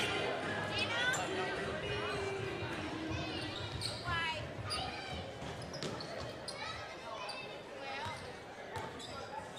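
Spectators and players shout and call out across the hall.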